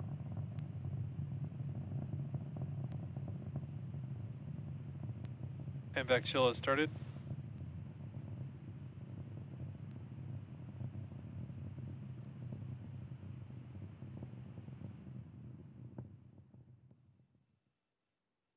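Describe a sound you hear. A rocket engine roars with a steady, deep rumble.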